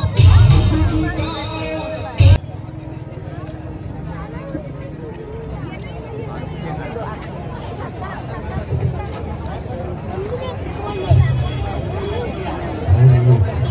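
A large crowd chatters outdoors all around.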